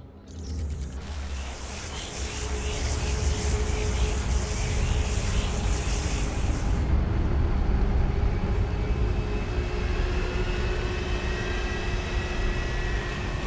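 A jet engine roars as an aircraft lifts off and climbs away.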